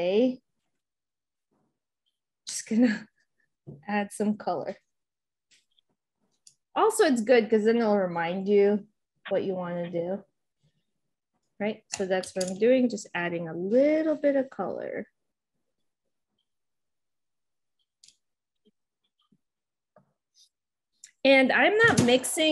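A woman talks calmly into a microphone, with pauses.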